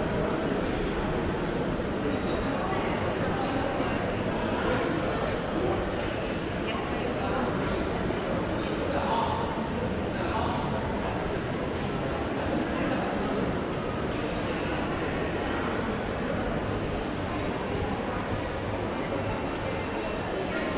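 Footsteps tap on a hard floor in a large echoing hall.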